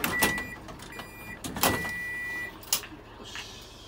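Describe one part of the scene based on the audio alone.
Train doors slide shut with a thud.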